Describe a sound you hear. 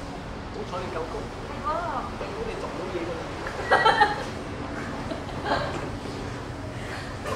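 A young woman speaks and laughs nearby.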